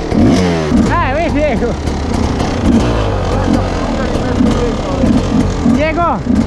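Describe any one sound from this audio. Motorcycle engines rev up and down nearby, rising and falling in pitch.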